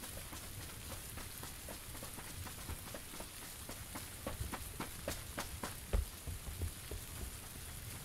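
Footsteps crunch and rustle through grass and undergrowth.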